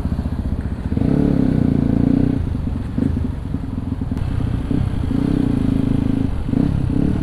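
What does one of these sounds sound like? Motorbikes ride past in traffic.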